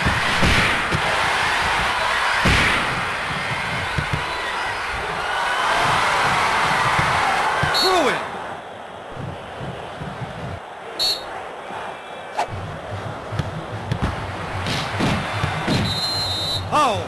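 A stadium crowd roars and cheers steadily.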